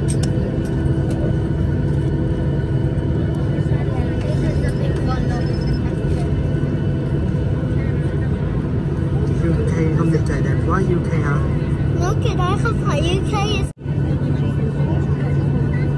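A jet engine roars loudly and steadily as an airliner takes off.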